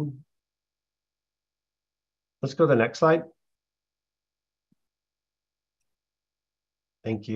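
A man speaks calmly through an online call, in short bursts with pauses.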